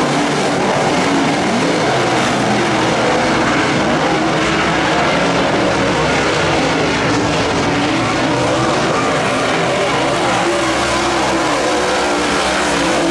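Loud race car engines roar and rev continuously.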